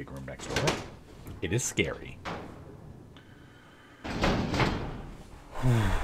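Heavy doors slide open with a low rumble.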